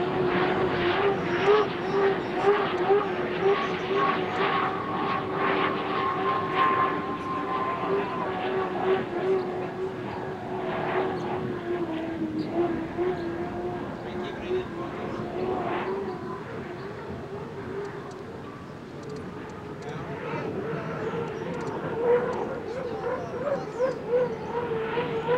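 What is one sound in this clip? A racing boat engine roars steadily at high speed, its pitch wavering.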